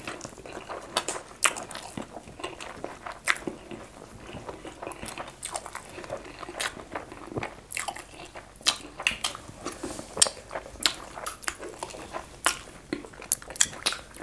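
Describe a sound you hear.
Fingers squish and tear soft food.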